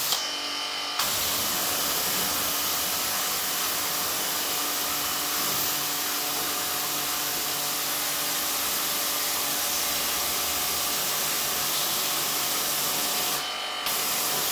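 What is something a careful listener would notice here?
A pressure washer sprays water with a loud, steady hiss.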